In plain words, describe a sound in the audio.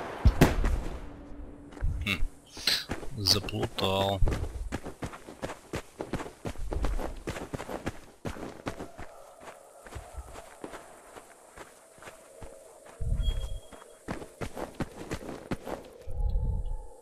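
Quick footsteps run over dirt and grass.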